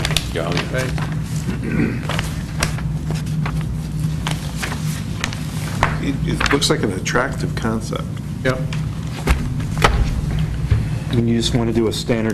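Papers rustle and flip close to a microphone.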